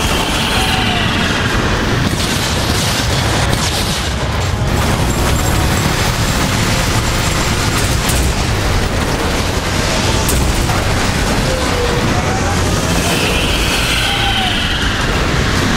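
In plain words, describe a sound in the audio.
Heavy gunfire blasts rapidly and without pause.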